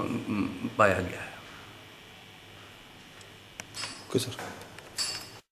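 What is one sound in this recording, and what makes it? A middle-aged man speaks calmly and close by, with pauses.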